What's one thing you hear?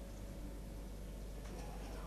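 Milk pours into a bowl.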